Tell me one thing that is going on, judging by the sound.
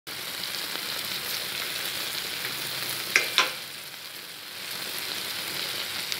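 Food sizzles and simmers steadily in a pan.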